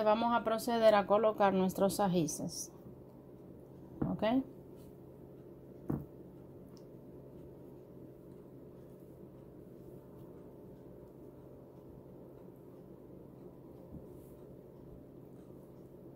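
Stuffed peppers are set down into sauce with a soft squish.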